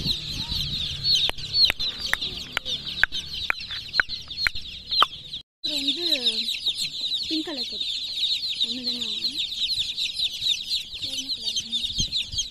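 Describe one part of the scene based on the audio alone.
Many chicks cheep loudly and constantly, close by.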